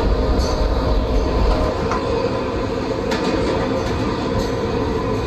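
A train rumbles steadily through a tunnel, its wheels clicking over rail joints.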